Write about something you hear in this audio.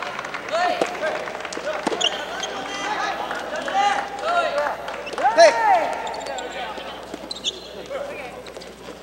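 Young men shout calls between shots.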